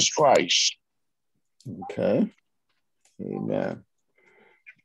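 An older man speaks calmly in short phrases, heard through a microphone.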